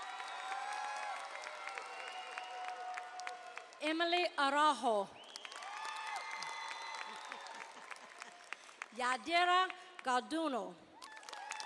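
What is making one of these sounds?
A crowd of graduates claps their hands.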